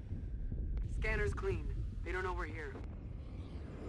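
A woman speaks urgently over a helmet radio.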